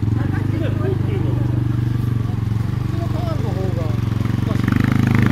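A trials motorbike engine idles with a fast, steady putter and revs up toward the end.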